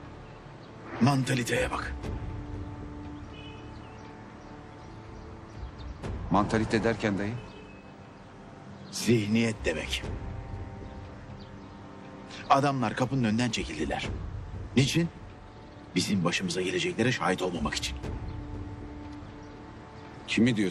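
A younger man answers quietly, close by.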